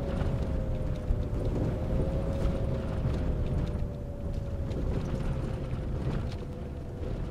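A bus engine hums steadily with a low rumble.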